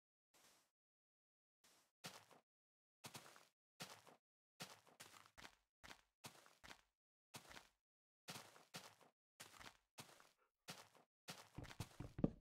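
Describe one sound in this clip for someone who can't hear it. Footsteps crunch on grass and sand at an even walking pace.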